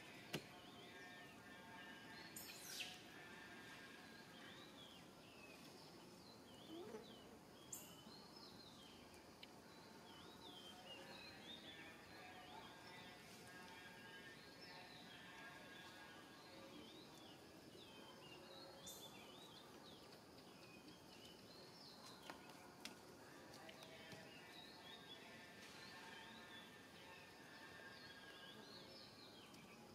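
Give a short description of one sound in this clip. A baby monkey squeaks and whimpers close by.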